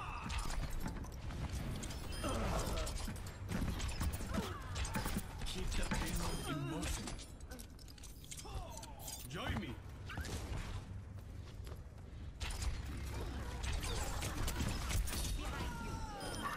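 Video game throwing stars whoosh and strike in rapid bursts of combat.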